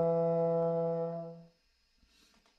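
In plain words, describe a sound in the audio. A horn ensemble holds a final chord over an online call, then stops.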